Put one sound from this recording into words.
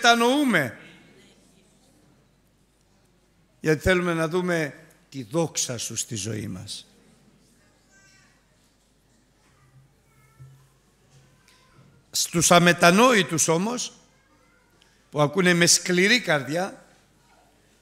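An elderly man preaches through a microphone with passion, in bursts separated by pauses.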